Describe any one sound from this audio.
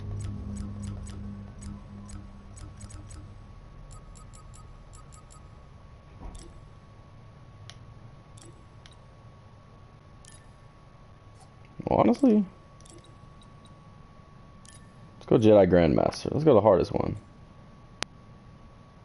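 Short soft clicks tick as menu options change.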